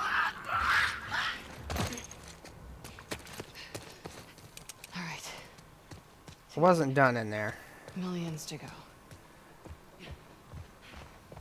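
Footsteps run on a hard floor.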